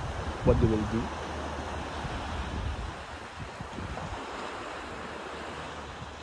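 Wind blows steadily across an open space outdoors.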